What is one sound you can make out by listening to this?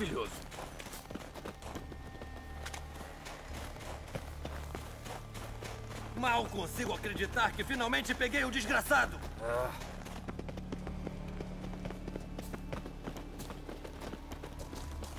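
Footsteps crunch steadily on a gravel path.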